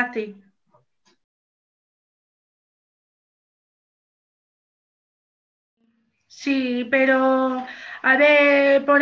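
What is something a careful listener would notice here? A woman sings in long held notes, heard close through an online call.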